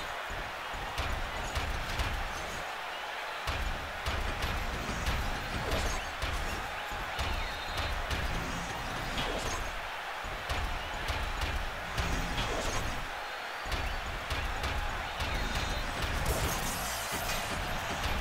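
Heavy metal punches clang and thud.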